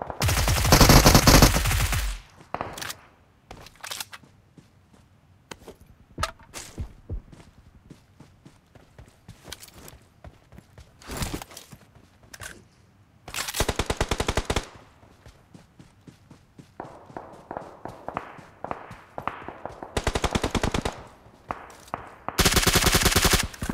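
Rapid bursts of automatic rifle fire ring out.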